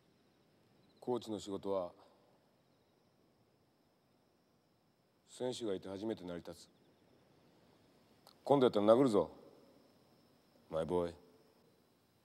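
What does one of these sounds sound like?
A middle-aged man speaks in a low, stern voice.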